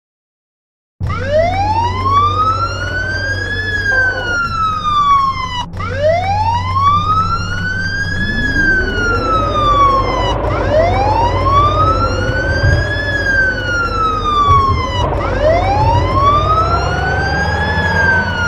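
A fire engine siren wails, rising and falling over and over.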